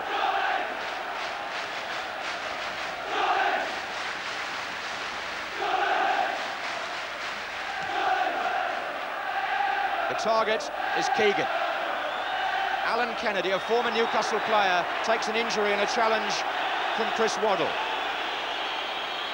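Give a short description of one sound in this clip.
A large crowd roars and chants in a stadium.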